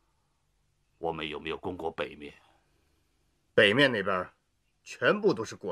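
A middle-aged man speaks calmly in short phrases close by.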